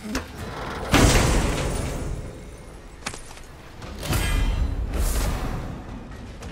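Coins and trinkets clink and jingle.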